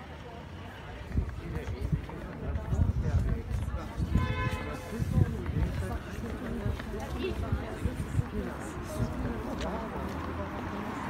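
Footsteps tap on a paved street.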